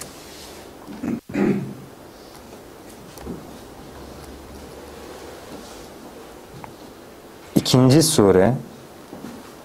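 A young man speaks briefly into a nearby microphone.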